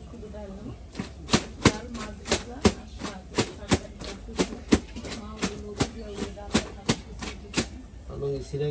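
A man scrubs and slaps wet clothes in rhythmic strokes.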